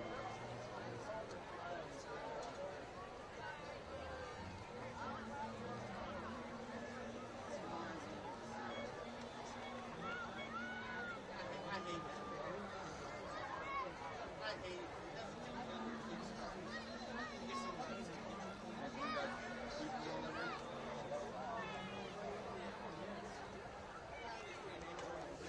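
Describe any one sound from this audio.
A large crowd chatters and shouts in the open air.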